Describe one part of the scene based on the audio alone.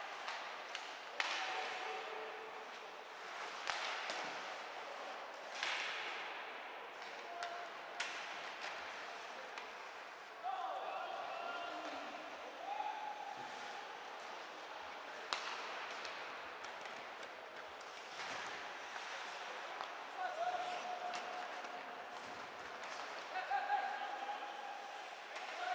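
Ice skates scrape and hiss across the ice in an echoing rink.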